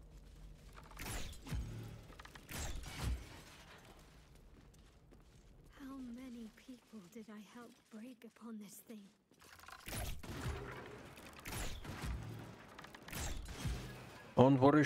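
Weapons strike wooden objects with heavy thuds.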